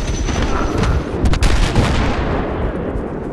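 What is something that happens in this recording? A loud explosion booms and rumbles close by.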